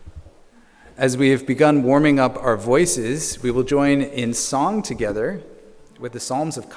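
A man sings loudly through a microphone in a reverberant room.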